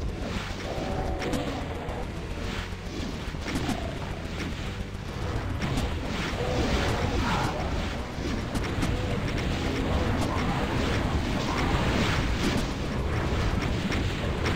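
Monsters growl and shriek.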